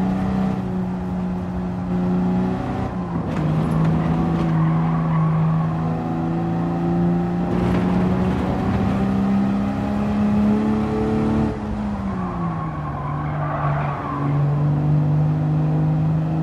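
A racing car engine roars loudly, its pitch shifting with each gear change.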